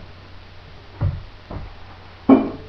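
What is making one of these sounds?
A guitar body knocks and thumps as it is handled.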